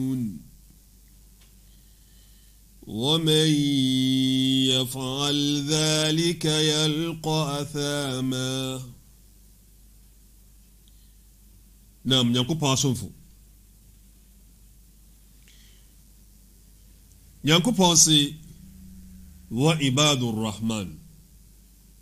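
A man chants melodically into a close microphone, in phrases separated by pauses.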